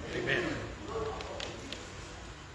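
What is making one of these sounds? An organ plays in a large echoing hall.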